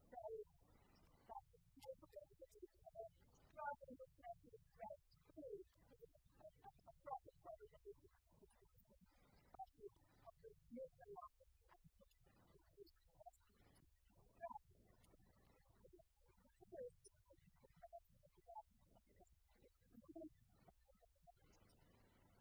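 A woman lectures calmly through a microphone.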